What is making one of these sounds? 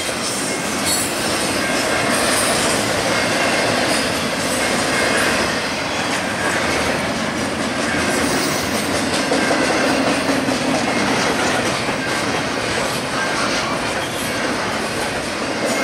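A long freight train rolls past close by with a steady loud rumble and clatter of wheels on rails.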